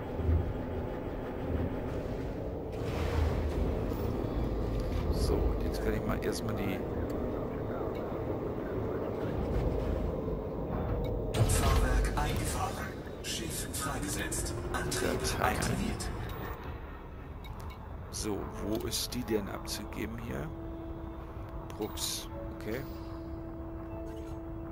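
A spaceship's engine hums low and steady.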